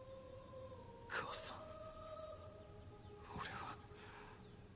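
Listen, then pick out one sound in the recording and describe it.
A young man speaks quietly and slowly.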